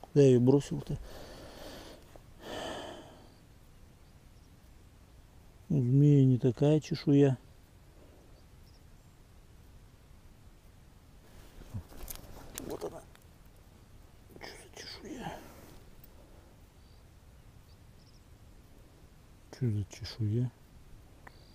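A man speaks calmly, close by, in short bursts.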